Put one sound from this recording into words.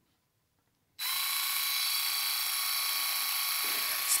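A small electric motor whirs with a steady, high buzzing hum.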